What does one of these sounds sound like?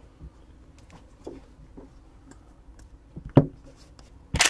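Cards tap and shuffle in hands.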